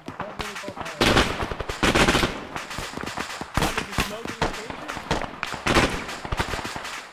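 A loud explosion booms and rumbles.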